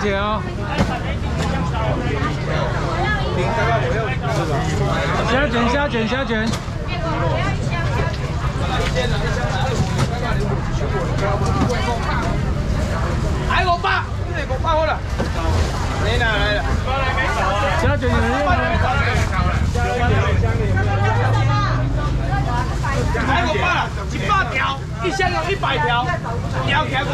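A crowd chatters all around.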